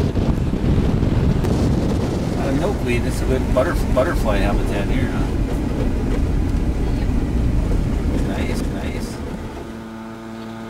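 A car rumbles along with wind buffeting the microphone.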